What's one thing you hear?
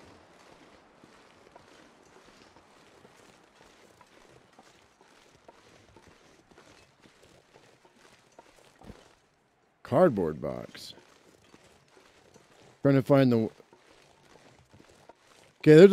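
Footsteps crunch softly through snow at a steady pace.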